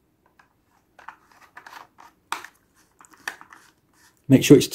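Plastic parts click and rattle as they are handled.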